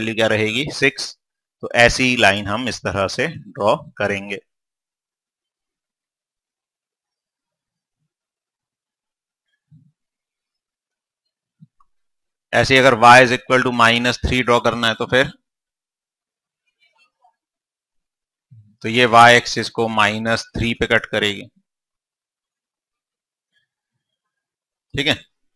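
A man lectures calmly through a clip-on microphone, in short bursts with long pauses.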